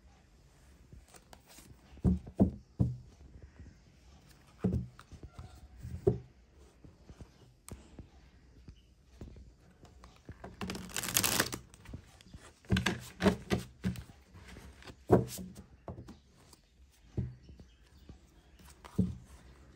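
Playing cards shuffle and riffle between hands.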